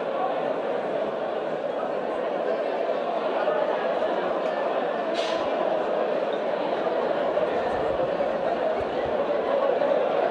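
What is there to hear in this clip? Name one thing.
A large crowd chatters at once in a big echoing hall.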